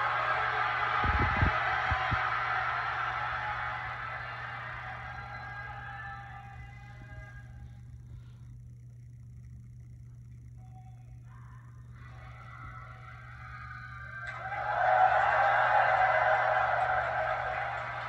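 Music plays from a television.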